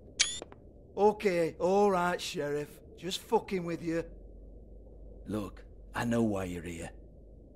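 A man speaks casually and mockingly, close by.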